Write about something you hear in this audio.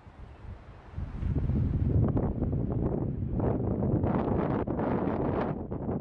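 Wind gusts roar across the microphone outdoors.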